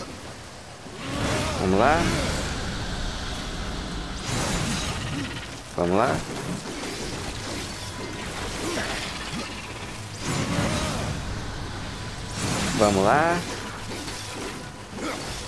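Blades clash and strike hard against a creature.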